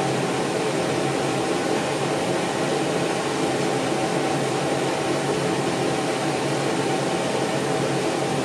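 An extractor fan hums steadily and loudly.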